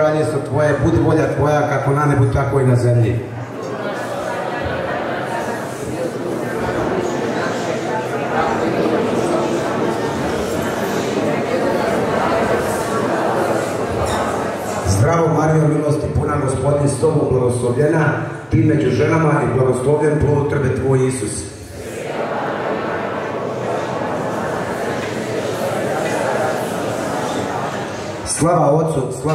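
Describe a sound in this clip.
Music with singing plays loudly through a loudspeaker in a large hall.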